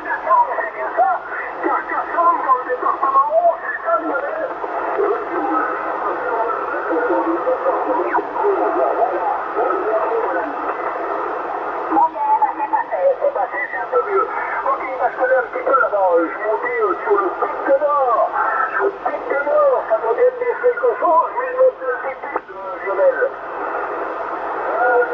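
A radio receiver plays warbling, garbled transmissions through its loudspeaker, shifting in pitch as it is tuned.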